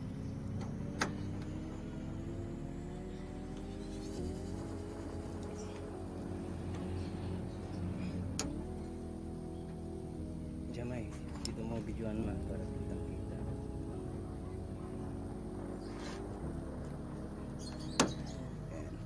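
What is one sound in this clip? A plastic door handle clicks and rattles against a car door.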